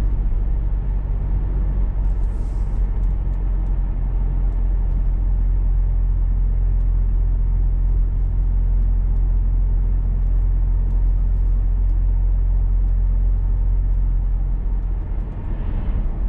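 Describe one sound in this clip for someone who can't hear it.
Tyres rumble steadily on a wet road.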